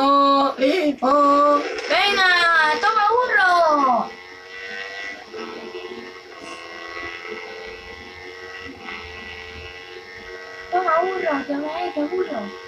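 A motorcycle engine revs loudly, its pitch rising and falling.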